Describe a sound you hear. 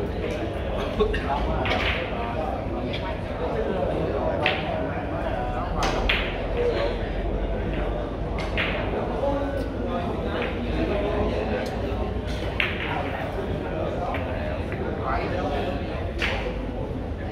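Billiard balls clack sharply against each other.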